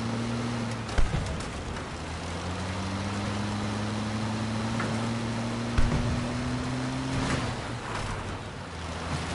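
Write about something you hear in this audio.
An armoured vehicle thuds and bangs over rough, rocky ground.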